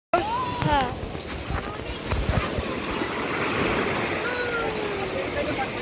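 Small waves wash onto a beach.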